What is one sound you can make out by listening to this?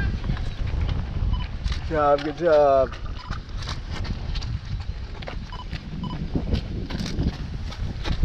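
Running footsteps slap on wet pavement, passing close by.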